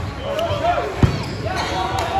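A volleyball is struck with a sharp smack in a large echoing gym.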